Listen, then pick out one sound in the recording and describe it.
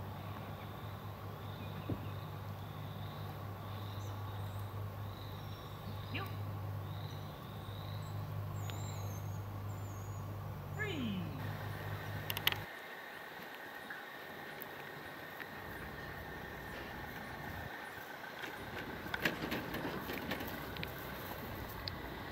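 A man speaks calmly to a dog nearby, outdoors.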